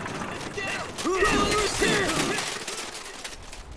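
Large birds squawk as they run.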